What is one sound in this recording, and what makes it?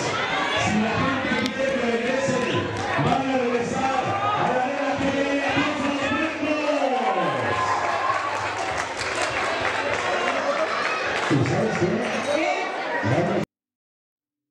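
A crowd of people shouts and cheers in a large echoing hall.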